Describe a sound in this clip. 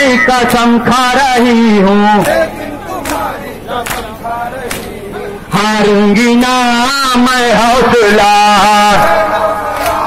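A crowd of men chants loudly in unison.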